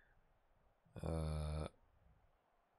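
A man hums briefly and thoughtfully, close to a microphone.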